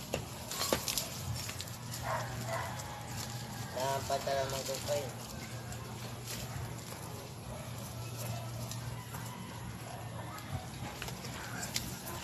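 Weeds rustle and tear as they are pulled from the ground.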